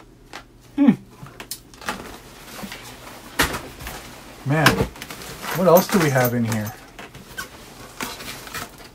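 Paper crinkles as it is handled.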